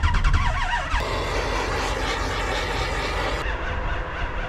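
A propane torch hisses steadily.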